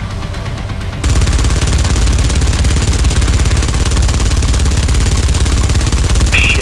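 A heavy cannon fires in a rapid, pounding stream.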